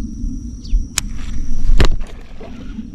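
A fishing reel clicks sharply.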